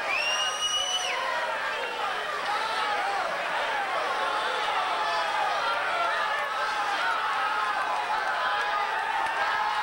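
A band plays amplified music on a stage.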